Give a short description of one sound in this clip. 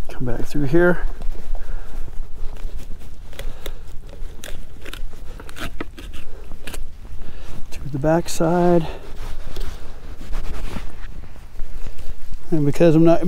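A knife slices through a fish.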